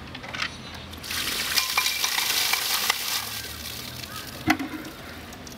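Water from a bucket pours down and splashes on the ground.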